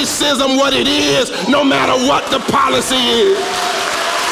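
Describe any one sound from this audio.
A man preaches loudly and with fervour through a microphone in an echoing hall.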